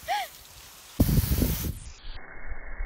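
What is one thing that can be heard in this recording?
Water sprays from a hose.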